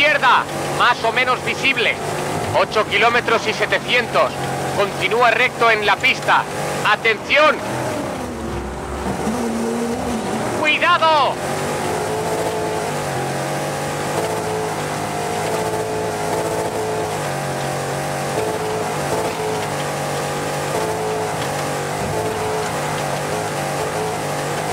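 A rally car engine roars at high revs.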